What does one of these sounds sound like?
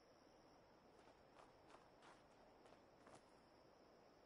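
Footsteps thud quickly on hard ground.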